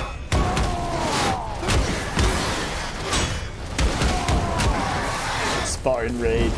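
Heavy blows and thuds land in a fight.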